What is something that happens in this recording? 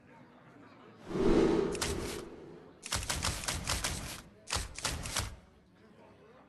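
Magical shimmering game sound effects chime and whoosh.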